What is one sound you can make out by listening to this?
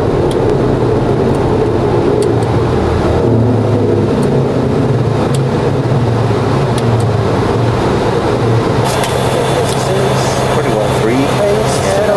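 Wind rushes past the cockpit windows.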